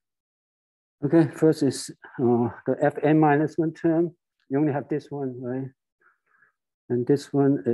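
A man speaks calmly and clearly, as if explaining, close by.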